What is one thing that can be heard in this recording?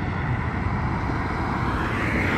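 A pickup truck and a car approach along a road.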